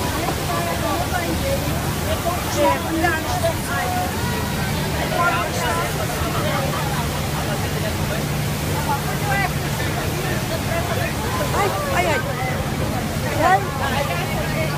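A waterfall roars in the distance.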